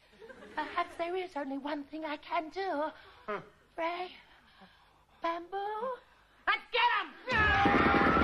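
A woman speaks in a shrill, wavering, theatrical voice, close by.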